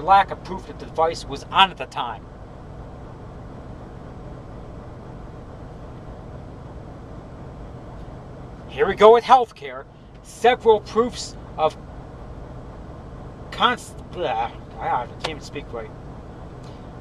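A man talks in short bursts, close by.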